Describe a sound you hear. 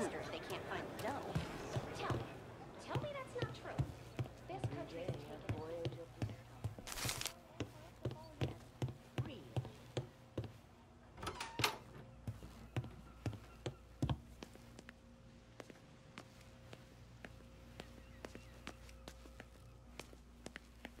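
Footsteps walk briskly across a hard floor.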